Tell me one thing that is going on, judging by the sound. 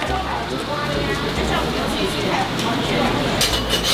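Footsteps walk along a street.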